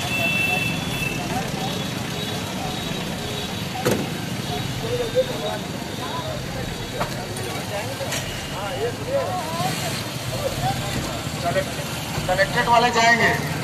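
A jeep engine rumbles as the jeep pulls up nearby.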